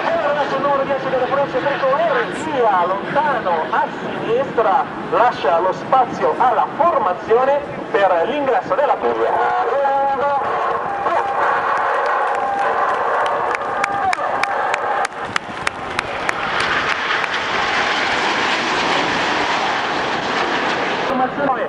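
Jet planes roar loudly overhead.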